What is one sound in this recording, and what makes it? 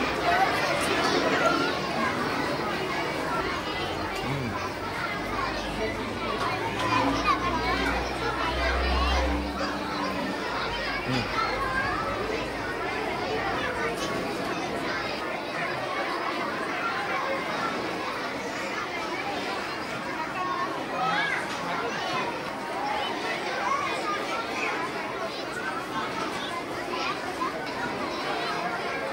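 A young girl speaks close by, reciting with animation.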